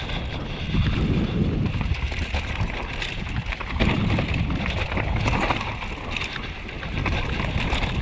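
Bicycle tyres roll and skid over a bumpy dirt trail.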